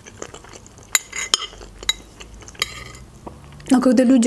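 A spoon clinks against a glass dish.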